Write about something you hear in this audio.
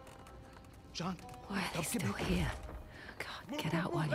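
A young woman mutters anxiously to herself, close by.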